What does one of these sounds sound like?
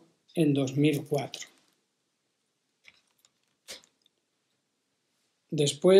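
An elderly man speaks calmly and close to the microphone, pausing between phrases.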